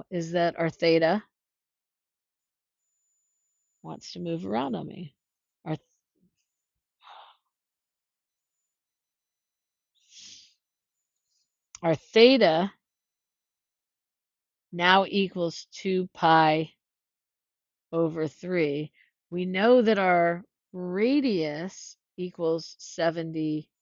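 A woman explains calmly and close to a microphone, in short phrases with pauses.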